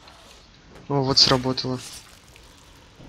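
A blade stabs wetly into flesh.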